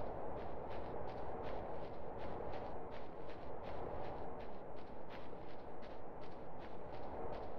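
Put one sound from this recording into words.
Footsteps scrape rhythmically up a steep rocky slope.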